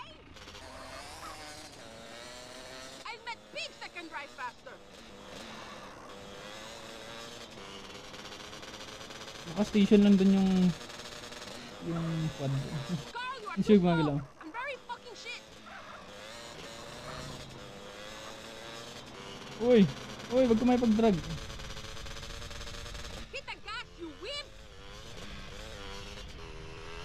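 A quad bike engine drones steadily.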